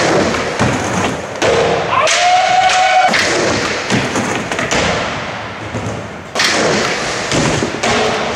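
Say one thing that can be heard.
A skateboard grinds along a ledge.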